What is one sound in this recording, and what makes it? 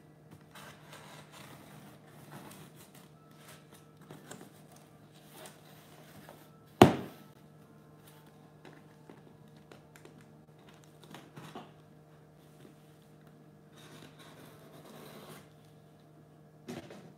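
A craft knife scrapes and cuts through stiff board in short strokes.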